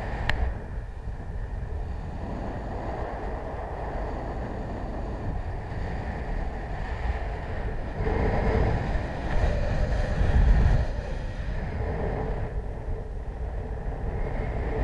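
Wind rushes and buffets loudly, gusting stronger at times.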